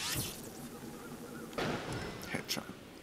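A bomb explodes with a sharp blast.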